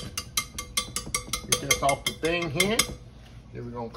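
A wire whisk taps against the rim of a glass bowl.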